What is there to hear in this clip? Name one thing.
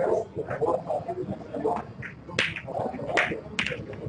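A cue sharply strikes a snooker ball.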